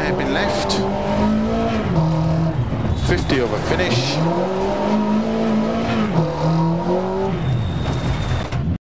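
A rally car engine revs hard, rising and dropping as gears shift.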